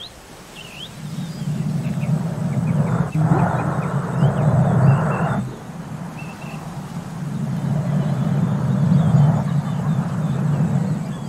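A glass bowl rolls and rumbles across a rough surface.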